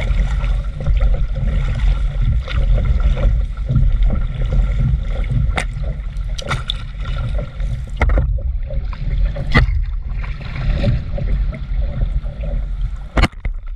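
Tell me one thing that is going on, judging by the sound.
Water splashes and laps against the hull of a small boat.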